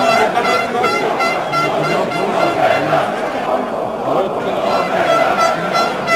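A large crowd of football supporters chants in unison in an open-air stadium.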